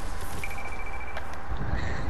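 Water splashes softly with wading steps.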